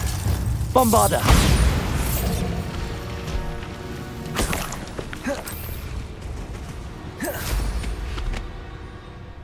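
Magic spells crackle and zap in quick bursts.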